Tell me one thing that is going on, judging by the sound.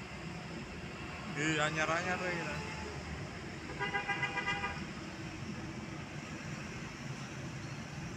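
A diesel dump truck drives past.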